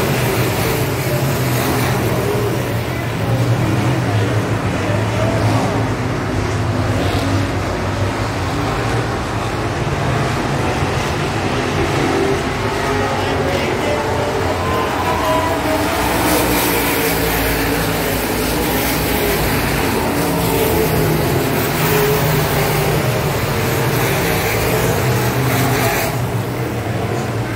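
Engines rise and fall in pitch as the cars pass by.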